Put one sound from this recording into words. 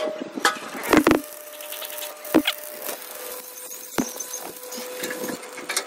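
An electric welder crackles and hisses.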